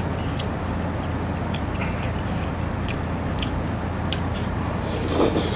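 A man chews wet food close to the microphone.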